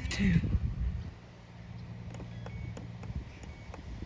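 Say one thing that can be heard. An electric fence unit ticks with sharp clicks.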